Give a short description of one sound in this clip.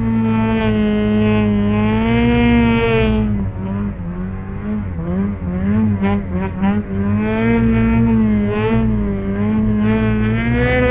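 A snowmobile engine roars close by, revving up and down.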